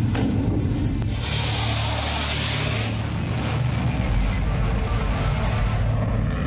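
A jet engine roars overhead.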